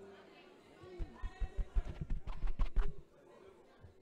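A microphone thumps and knocks as hands handle it.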